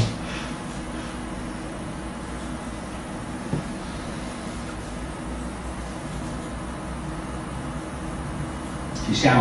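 A man speaks calmly at a distance in an echoing room.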